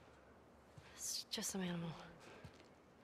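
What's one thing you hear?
A young girl answers calmly.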